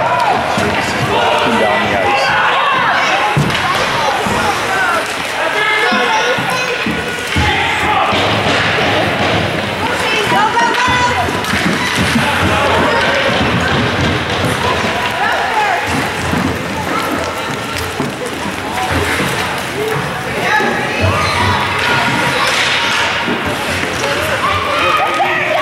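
Spectators chatter and call out nearby in an echoing rink.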